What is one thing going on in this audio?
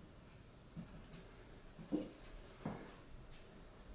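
Feet thud lightly on a wooden box.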